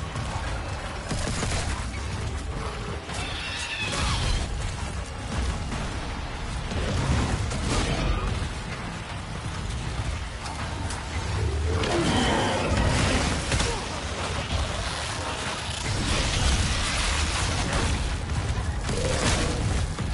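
A plasma gun fires in sharp bursts.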